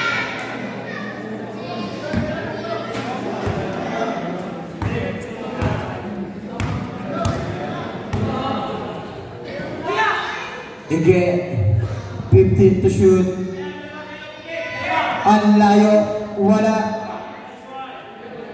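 A crowd of young spectators chatters and shouts nearby.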